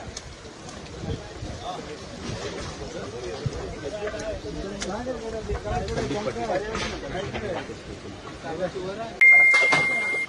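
A crowd of men talk excitedly nearby, outdoors.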